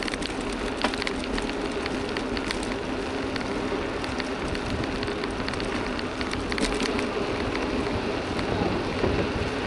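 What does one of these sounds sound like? Wheels roll and rattle over rough asphalt.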